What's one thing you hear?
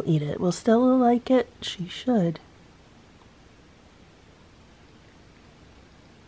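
A cat laps softly at food on a plate.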